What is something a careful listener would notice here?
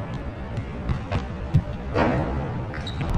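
A football is kicked with a thump.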